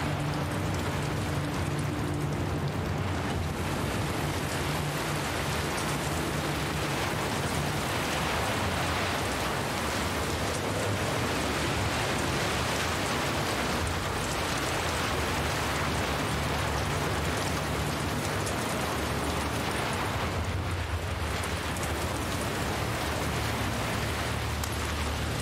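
Heavy rain and wind roar steadily outdoors.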